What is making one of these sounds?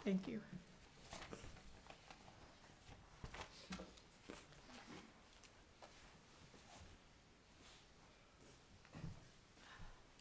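Footsteps thud softly on a floor.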